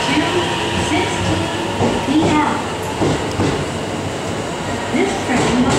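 A train rolls slowly past along a platform.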